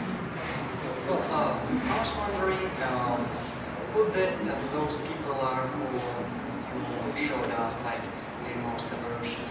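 A young man speaks calmly into a microphone, amplified through a loudspeaker in a large echoing room.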